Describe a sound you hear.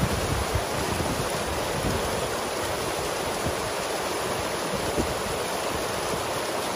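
Water rushes and splashes steadily through a gap close by.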